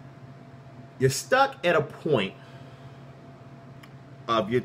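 A man speaks close up with animation in short bursts.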